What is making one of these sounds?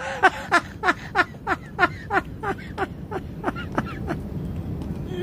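A middle-aged man laughs heartily close by.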